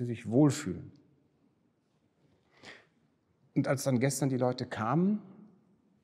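An elderly man speaks calmly and thoughtfully, close by in a quiet echoing hall.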